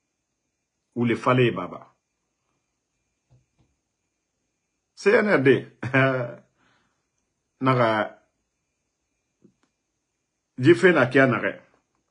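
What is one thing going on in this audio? A man speaks calmly in short phrases close to a microphone.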